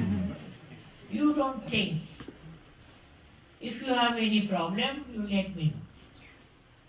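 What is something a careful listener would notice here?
An elderly woman speaks firmly into a microphone, in short phrases with pauses.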